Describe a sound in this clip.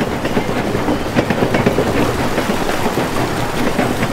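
Water rushes and splashes down a waterfall.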